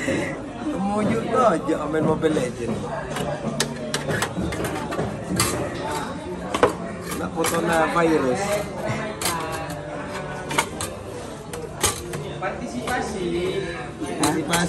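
Metal parts click and clank as they are handled.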